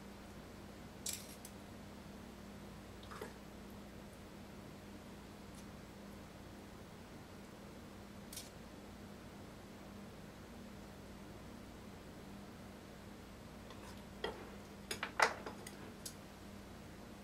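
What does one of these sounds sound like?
A knife taps and scrapes on a board.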